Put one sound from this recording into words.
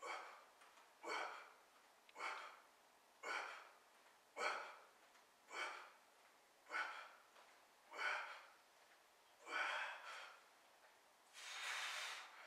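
A man breathes out hard with each lift, in a steady rhythm.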